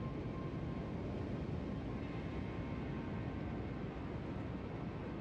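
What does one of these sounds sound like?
A warship's engine rumbles steadily.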